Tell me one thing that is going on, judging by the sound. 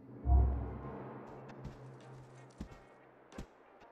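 Footsteps tread on a wooden floor indoors.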